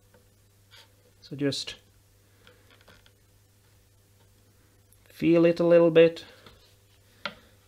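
A blade scrapes lightly against wood and metal frets.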